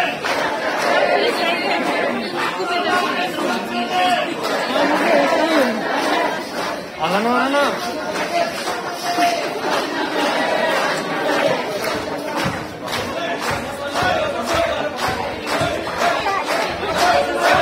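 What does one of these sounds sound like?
A man shouts angrily above the crowd.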